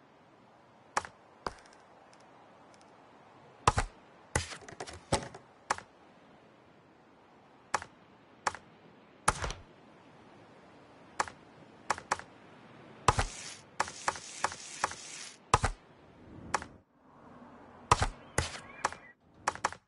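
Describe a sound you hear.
Menu clicks and short swooshes sound as options are picked.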